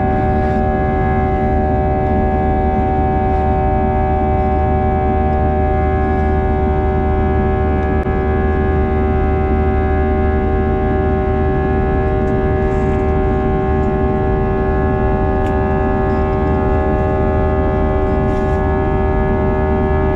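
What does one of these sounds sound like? A jet engine roars and whines steadily.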